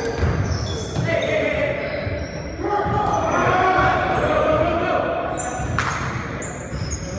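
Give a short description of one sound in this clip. A basketball thumps as it bounces on a hardwood floor.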